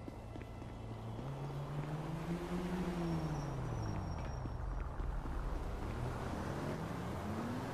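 Running footsteps patter on pavement.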